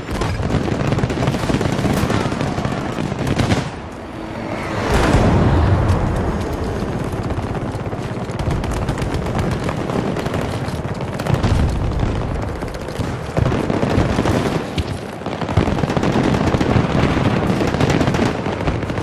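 Rapid gunfire crackles and pops nonstop.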